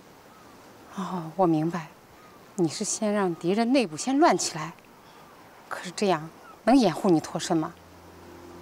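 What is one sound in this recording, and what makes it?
An older woman answers in a worried, low voice.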